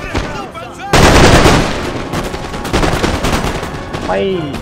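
A volley of musket shots cracks out at close range.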